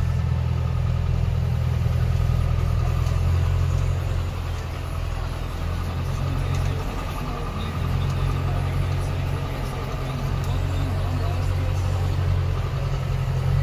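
Harvested beets rattle and tumble on a conveyor.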